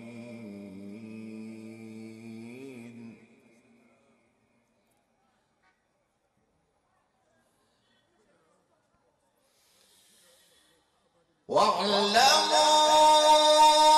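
A man chants in a long, held melodic voice through a microphone and loudspeakers, echoing widely.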